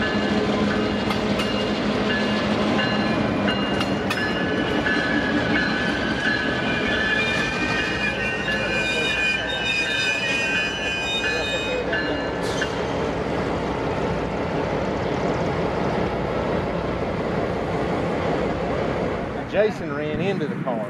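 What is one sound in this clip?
A passenger train rumbles past on the tracks.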